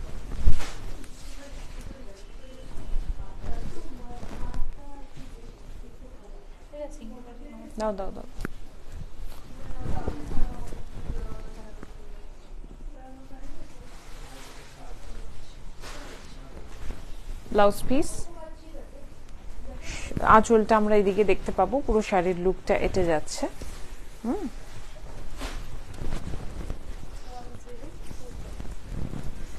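Silk fabric rustles and swishes as it is handled.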